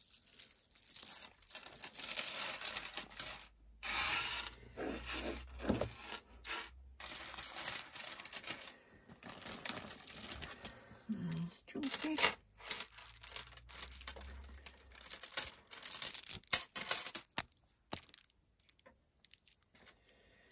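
Plastic beads click and rattle as a hand handles them.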